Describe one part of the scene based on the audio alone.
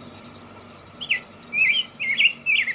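A small bird chirps in short bright bursts.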